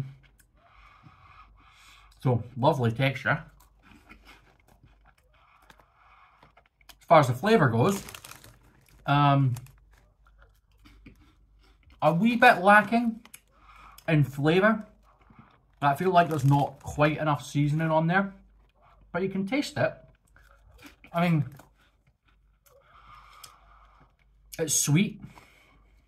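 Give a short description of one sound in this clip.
A man chews crunchy snacks.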